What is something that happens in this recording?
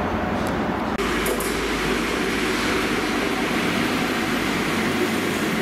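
A diesel train engine hums close by as the train passes slowly.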